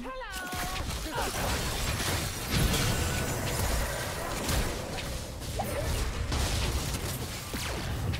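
Magic spells crackle and burst amid a clattering battle.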